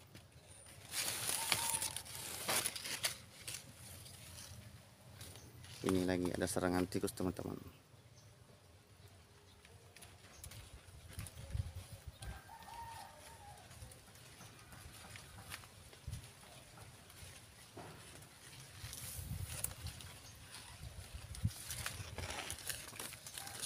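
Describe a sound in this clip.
Corn leaves rustle and brush close by.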